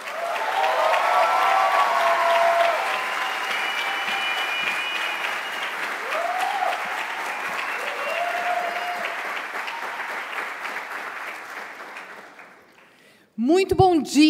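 A large crowd cheers and applauds in an echoing hall, then fades.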